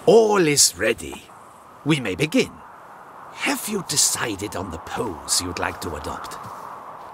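A man speaks calmly in a gravelly voice, close by.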